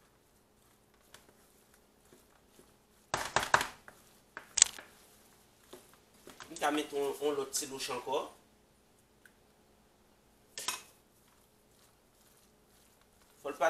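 Gloved hands toss a salad in a bowl with soft rustling.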